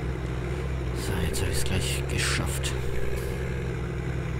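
A mulcher on a tractor clatters and grinds.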